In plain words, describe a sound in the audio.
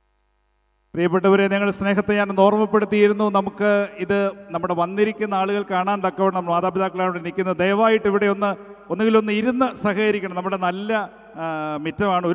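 A group of young people sings together over loud music.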